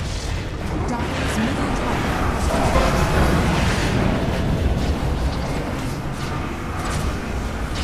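Spell effects crackle and burst in a fantasy battle.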